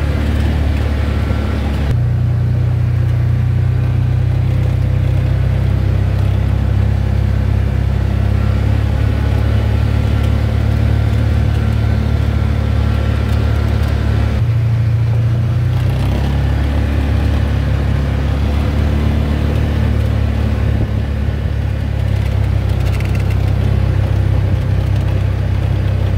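A small tractor engine chugs steadily nearby.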